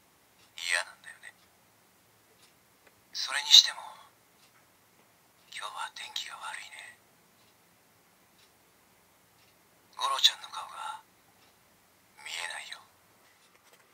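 A toy belt plays short recorded voice clips through a small tinny speaker.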